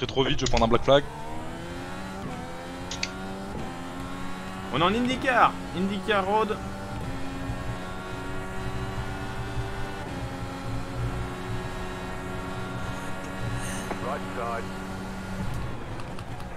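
A racing car engine whines steadily, rising and falling in pitch with gear changes.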